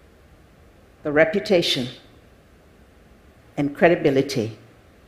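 An elderly woman speaks slowly and calmly through a microphone in a large hall.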